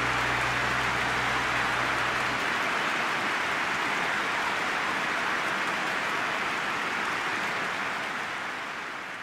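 A large crowd roars and cheers steadily.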